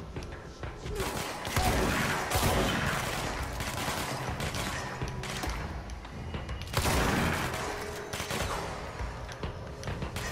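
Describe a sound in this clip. A pistol fires in rapid bursts.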